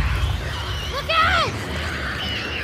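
A young woman shouts a warning.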